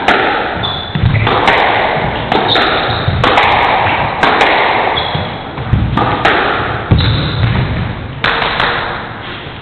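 A squash ball smacks hard against the walls in a fast rally.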